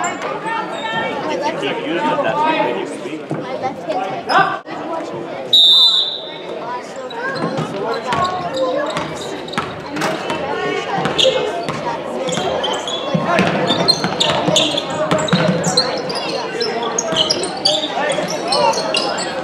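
A crowd chatters and murmurs in a large echoing gym.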